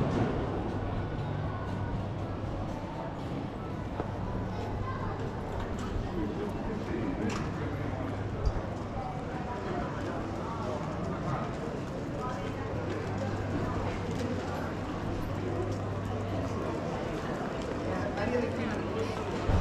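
A crowd murmurs faintly in the distance outdoors.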